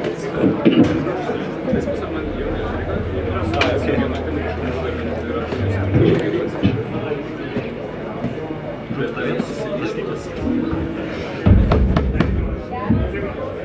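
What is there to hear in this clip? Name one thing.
A drummer plays a rock beat with crashing cymbals.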